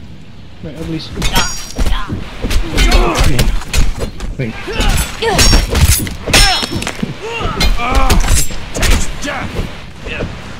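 Men grunt and shout while fighting up close.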